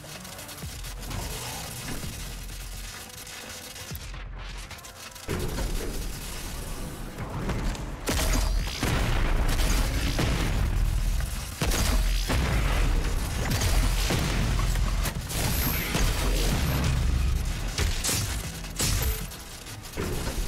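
Electricity crackles and buzzes.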